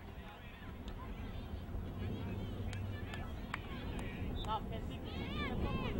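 A crowd of spectators chatters and calls out across an open field outdoors.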